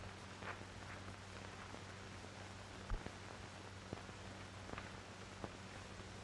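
Footsteps crunch through dry brush and leaves.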